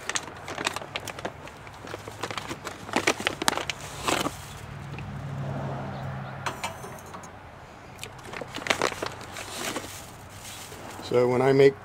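A foil bag crinkles and rustles in a man's hands.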